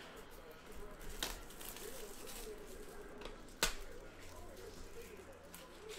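Plastic wrap crinkles as hands tear at a pack.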